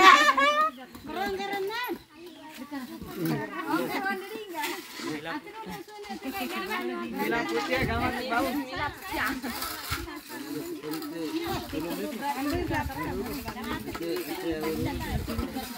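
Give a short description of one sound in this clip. Several women and men chatter in the background outdoors.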